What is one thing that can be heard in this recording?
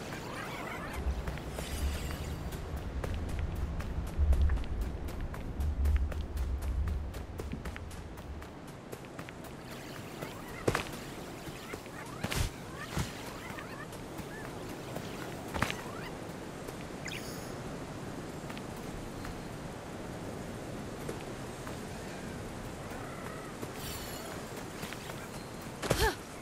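Footsteps patter quickly through grass and over stone.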